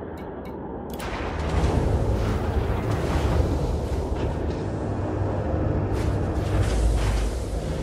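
A spaceship's engines rumble deeply and grow louder.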